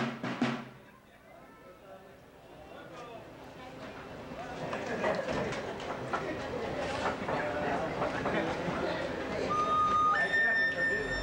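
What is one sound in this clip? A group of adults chatter and talk over one another nearby.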